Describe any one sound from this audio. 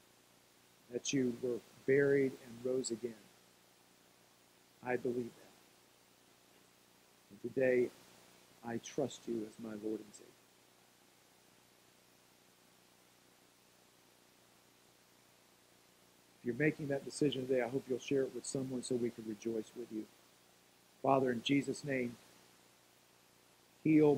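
A middle-aged man speaks calmly into a microphone, pausing often.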